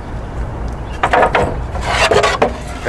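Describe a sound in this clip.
Wooden boards knock and clatter on a workbench.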